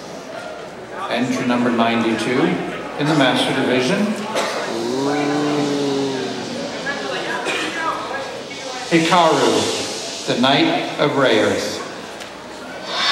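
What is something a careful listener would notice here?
A man speaks theatrically through a microphone in a large hall.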